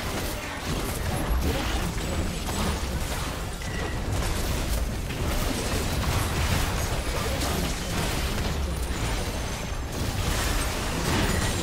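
Game spells whoosh and crackle in a fight.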